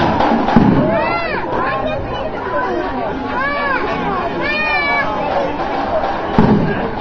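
A marching band plays loudly in a large echoing hall.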